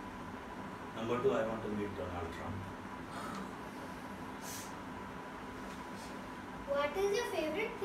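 A teenage girl speaks calmly close by.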